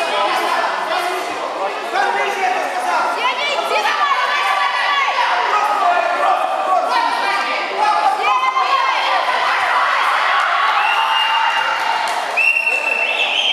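Men shout encouragement in an echoing hall.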